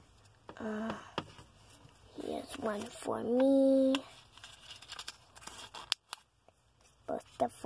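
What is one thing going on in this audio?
Small plastic toy pieces click and rustle as they are handled.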